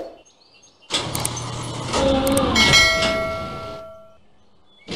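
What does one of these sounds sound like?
A metal hatch slides open with a mechanical whir.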